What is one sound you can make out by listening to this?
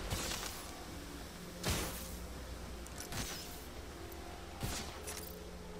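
Footsteps thud quickly over hard ground.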